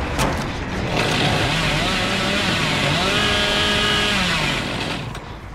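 A chainsaw revs loudly, its engine whining up and down in pitch.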